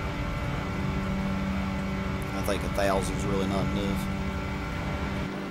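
A car engine drones steadily at high revs.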